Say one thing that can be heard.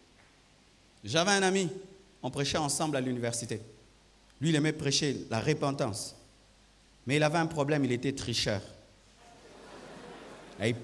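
A man speaks with animation into a microphone, heard through loudspeakers in a large echoing hall.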